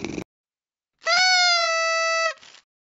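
A party horn blows a long, steady toot.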